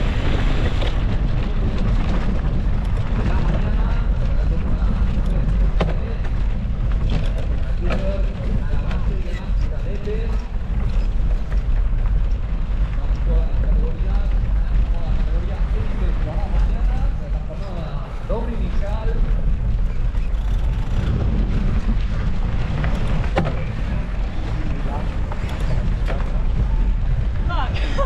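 Wind buffets loudly against the microphone.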